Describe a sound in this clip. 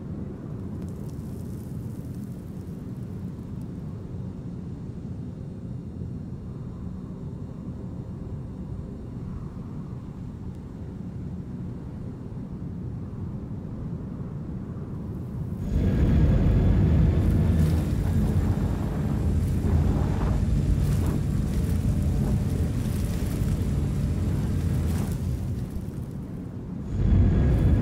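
A heavy vehicle's engine rumbles low and steady.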